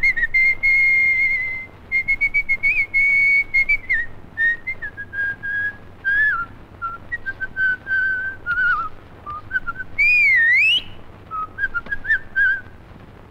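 A man whistles a lively tune nearby.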